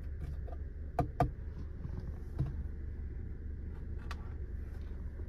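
Fingers tap and click against plastic.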